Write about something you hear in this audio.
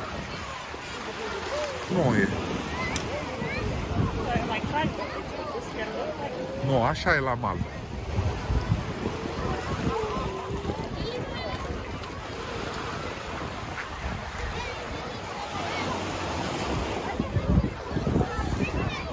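A crowd of men, women and children chatter and call out all around, outdoors.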